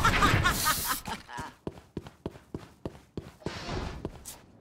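Quick footsteps thud steadily on a hard floor.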